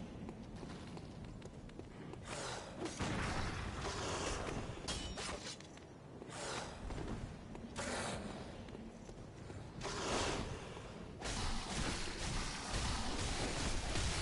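A beast snarls and roars.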